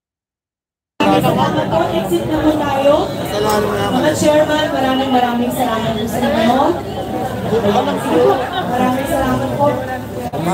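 A crowd of people talk and call out at once outdoors, heard up close.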